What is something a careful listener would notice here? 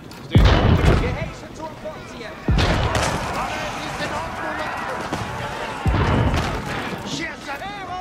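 Cannons fire in bursts.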